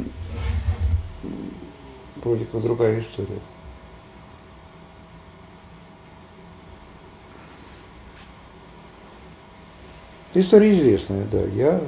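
An older man speaks calmly and close by, with pauses.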